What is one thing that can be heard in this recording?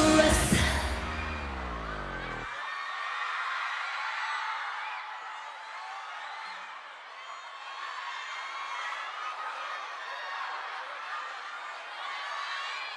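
Young women sing together through microphones.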